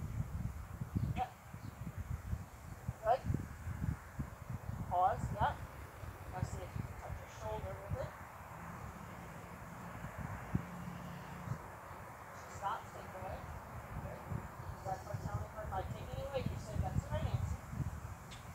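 A young girl talks and calls out at a distance outdoors.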